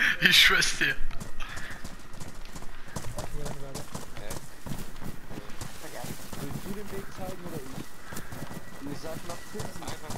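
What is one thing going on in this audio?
Footsteps run over grass.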